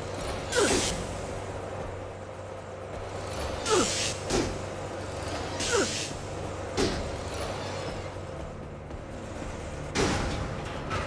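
Steam hisses in short, repeated bursts.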